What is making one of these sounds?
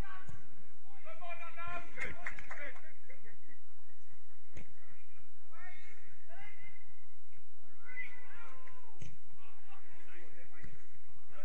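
Football players shout to each other across an open outdoor pitch.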